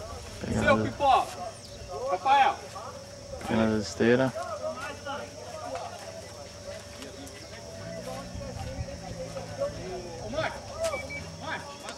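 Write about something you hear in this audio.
Men shout and call out to each other outdoors nearby.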